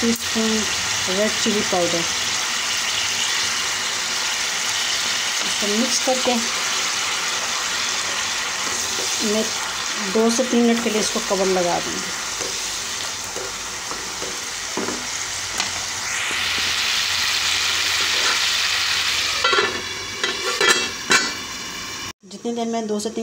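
Sauce bubbles and sizzles steadily in a pan.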